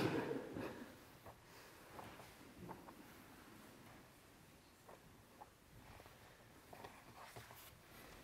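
Book pages rustle as they turn.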